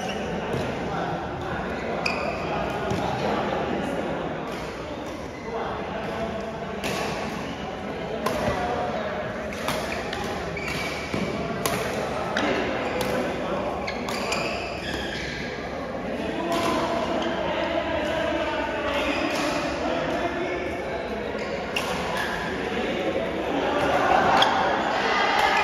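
Badminton rackets strike a shuttlecock in quick rallies, echoing in a large hall.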